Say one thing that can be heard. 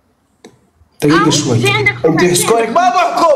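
A young man shouts excitedly over an online call.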